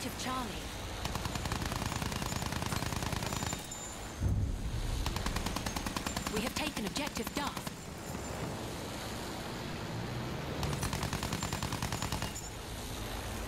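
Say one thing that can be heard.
A plane's machine guns fire in rapid bursts.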